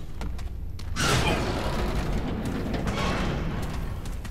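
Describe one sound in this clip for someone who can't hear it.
A heavy metal door swings open with a creak.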